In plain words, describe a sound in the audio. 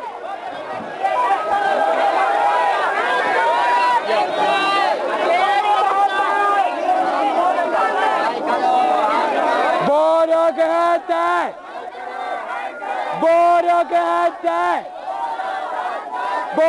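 A crowd of people shouts and chants loudly close by.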